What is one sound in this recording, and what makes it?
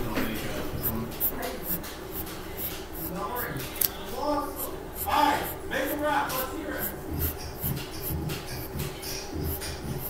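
A pencil scratches across paper in short strokes.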